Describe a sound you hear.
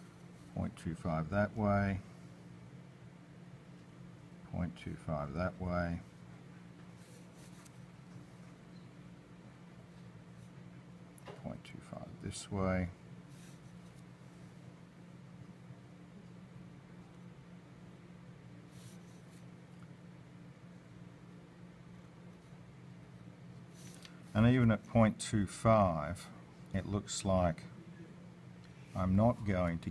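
A pencil scratches lightly on paper.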